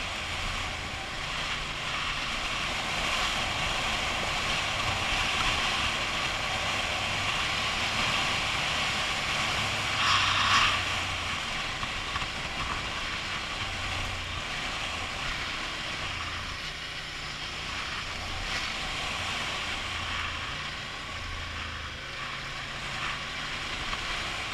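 Wind rushes steadily past a helmet.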